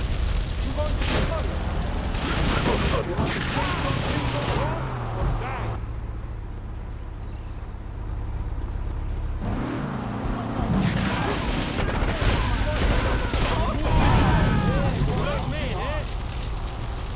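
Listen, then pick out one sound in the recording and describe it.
Gunshots and explosions bang out in bursts.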